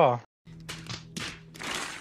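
Several men shout in excitement.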